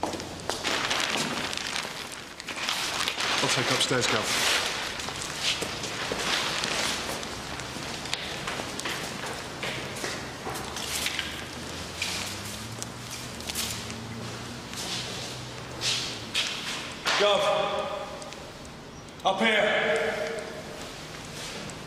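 A man speaks in a low voice nearby.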